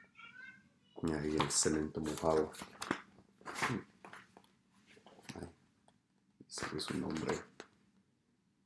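A man reads aloud with animation, close by.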